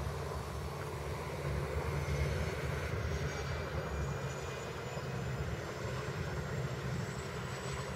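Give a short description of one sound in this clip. A propeller plane speeds along a runway at a distance with a faint engine drone.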